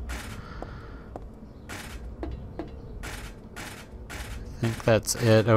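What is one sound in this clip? Footsteps thud slowly on a metal walkway.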